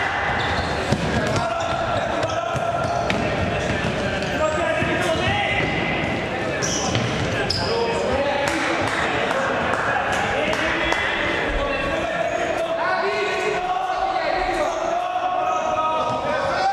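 A ball thuds on a wooden floor in a large echoing hall.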